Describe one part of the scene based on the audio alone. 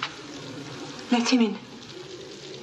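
A young woman speaks with alarm close by.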